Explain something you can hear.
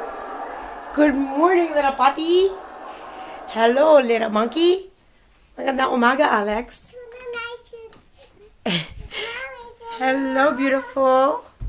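A toddler babbles and squeals nearby in high, sing-song bursts.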